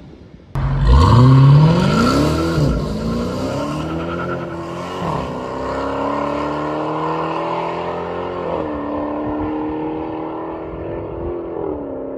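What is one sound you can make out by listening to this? A car engine revs and roars as the car drives away, slowly fading.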